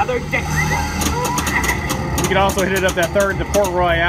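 A pinball ball clacks against bumpers and flippers.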